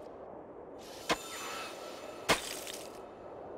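Ice cracks sharply.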